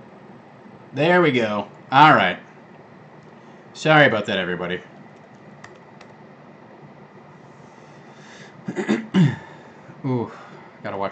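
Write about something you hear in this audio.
A man speaks calmly into a close microphone, in short bursts between pauses.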